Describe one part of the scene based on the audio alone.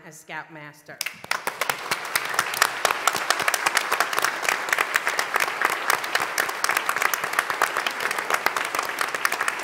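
A woman claps her hands.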